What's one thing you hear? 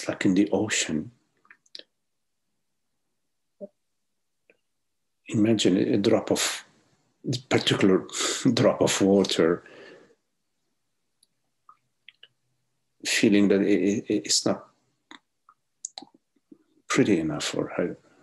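An older man speaks calmly, in phrases with pauses, over an online call.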